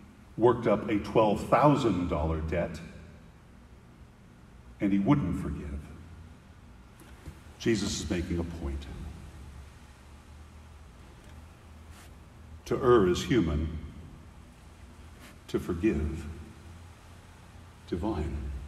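An older man speaks calmly into a microphone in short phrases with pauses, echoing slightly in a large hall.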